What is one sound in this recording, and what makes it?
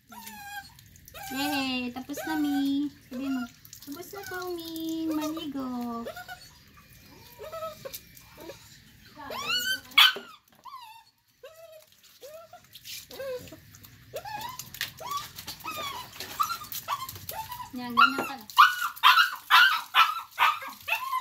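Water splashes from a tap onto a wet floor.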